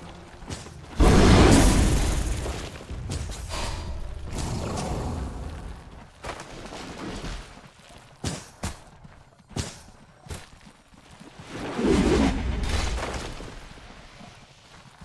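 A deep rumbling whoosh swells and fades.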